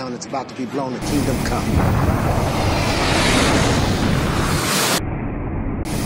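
Jet engines roar loudly as they fly past.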